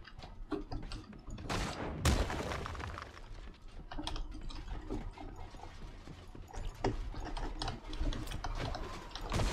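Game building pieces clack quickly into place.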